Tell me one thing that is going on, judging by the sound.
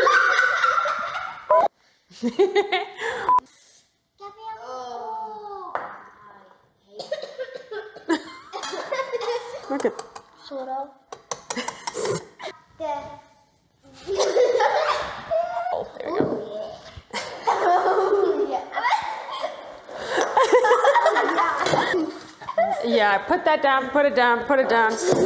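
A woman talks and laughs with animation close by.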